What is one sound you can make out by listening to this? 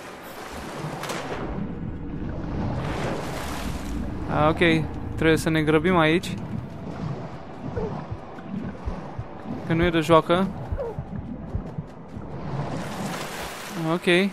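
Bubbles gurgle and rise through water.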